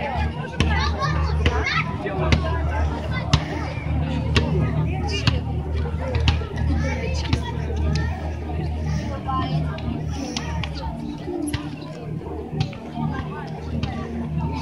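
A crowd of children and adults chatters and calls out outdoors.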